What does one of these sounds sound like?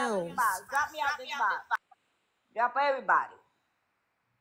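A young woman speaks with animation close to a phone microphone.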